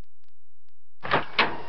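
A door opens with a loud clunk.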